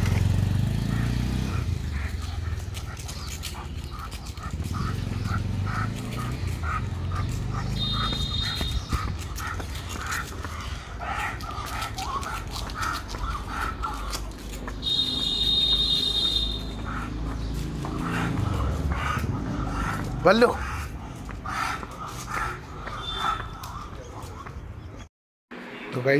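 A dog's claws click steadily on pavement as it walks.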